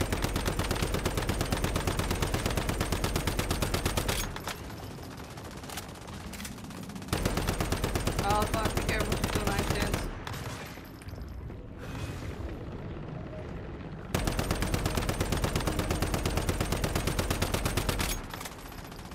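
A rifle fires in rapid, fast bursts.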